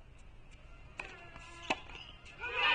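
A tennis ball bounces on a hard court a few times.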